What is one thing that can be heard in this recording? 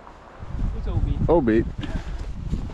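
A boy talks nearby.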